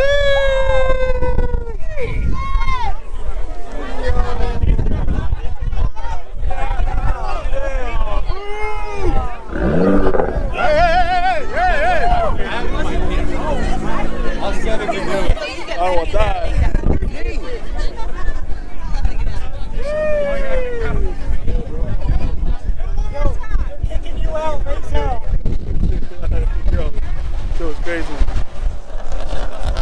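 A young man talks and laughs excitedly close to a microphone.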